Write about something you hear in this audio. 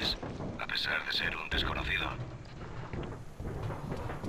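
Footsteps thud quickly along a metal pipe.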